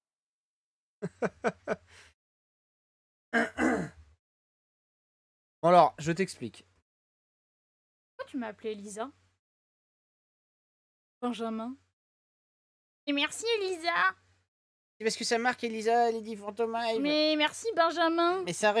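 A man speaks with animation in short bursts, close to a microphone.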